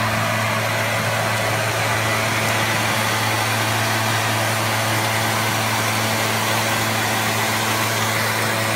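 Air rushes out of a leaf blower's nozzle with a loud hiss.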